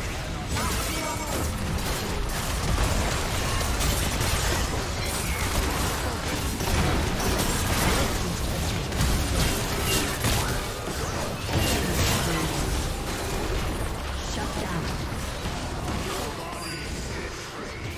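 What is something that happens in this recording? Game spell effects whoosh, crackle and boom in a busy battle.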